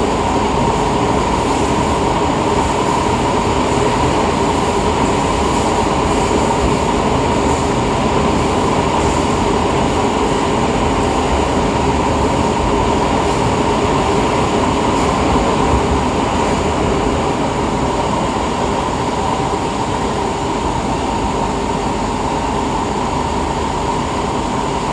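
A subway train rumbles and roars steadily along the track.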